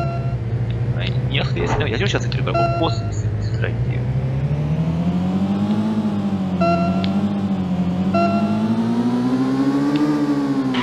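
A video game car engine hums and whines, rising and falling in pitch.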